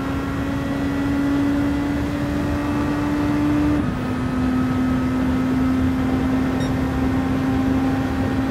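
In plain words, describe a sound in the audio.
A racing car engine roars at high revs, rising and then dropping sharply as it shifts gear.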